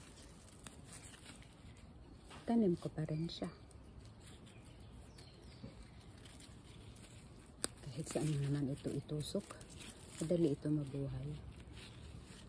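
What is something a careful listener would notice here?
Leaves rustle as plants are handled.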